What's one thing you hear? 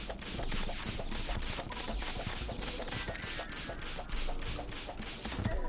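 Rapid magical weapon shots fire again and again.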